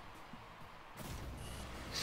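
A goal explodes with a crackling burst.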